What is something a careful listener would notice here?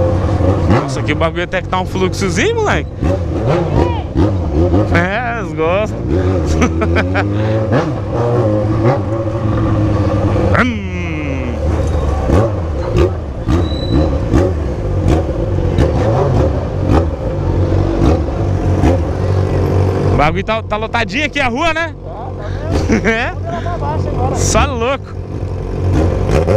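A motorcycle engine drones and revs up and down close by.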